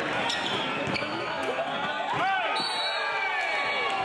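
Basketball shoes squeak sharply on a hard court.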